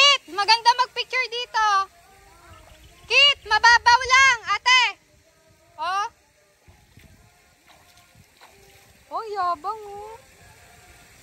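A toddler babbles and squeals in high bursts close by.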